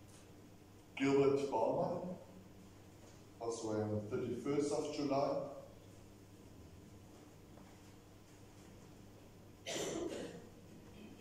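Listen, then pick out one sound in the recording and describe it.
A man speaks calmly from a distance in a large echoing hall, with pauses between phrases.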